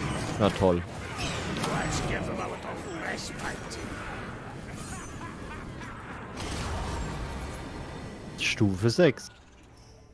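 Fiery spell blasts roar and crackle.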